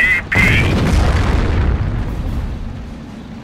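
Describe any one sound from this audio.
Tank guns fire and shells explode with a low rumble.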